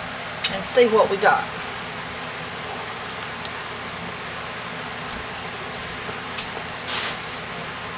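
A wooden spoon stirs a thick, wet mixture with soft squelches.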